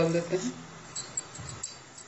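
Cumin seeds sizzle in hot oil.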